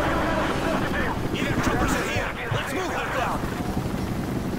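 A man speaks urgently over a radio.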